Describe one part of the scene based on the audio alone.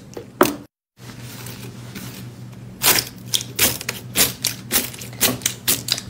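Tiny foam beads in slime crackle and crunch under pressing hands.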